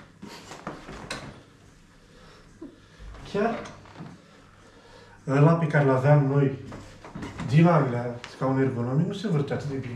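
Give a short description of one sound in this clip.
An office chair creaks as a man rocks in it.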